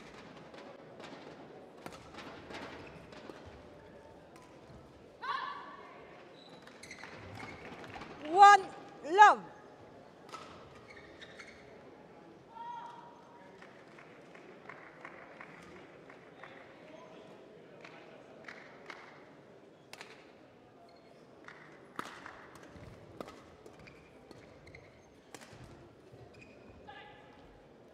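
Rackets strike a shuttlecock in a quick rally.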